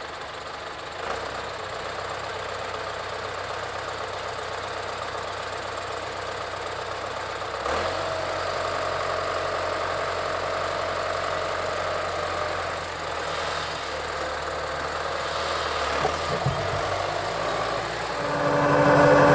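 Tractor engines idle and rumble steadily outdoors.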